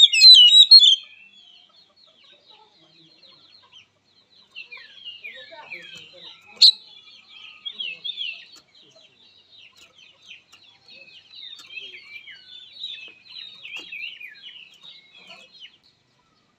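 A bird sings close by in loud, varied whistles and chirps.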